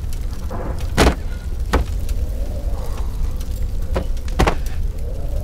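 A wooden chair bumps and knocks against stone.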